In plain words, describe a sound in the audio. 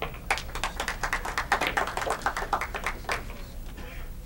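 Pool balls click sharply against each other.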